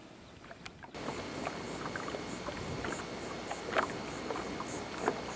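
A fishing reel clicks softly as its handle is turned.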